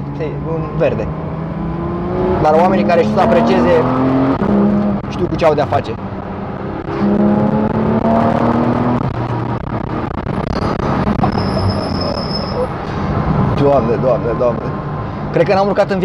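A car engine roars and revs up and down from inside the cabin.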